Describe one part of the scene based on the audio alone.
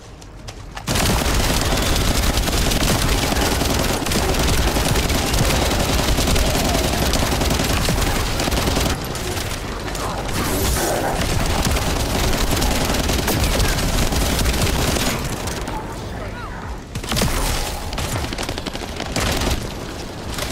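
Game weapons clash and strike in rapid bursts.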